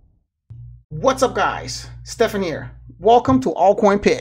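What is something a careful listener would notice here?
A young man talks calmly and closely into a microphone.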